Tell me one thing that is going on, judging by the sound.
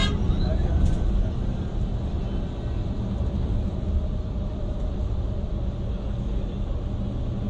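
Tyres roll and hum on the road.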